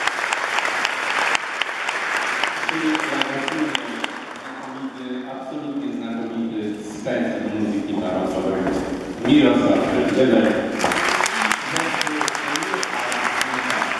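A man plays a horn melody in a large echoing hall.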